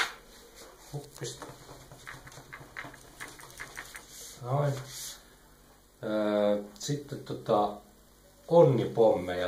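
A marker scratches across paper.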